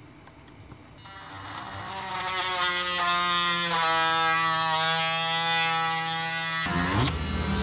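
A small electric drill whines as it bores through plastic.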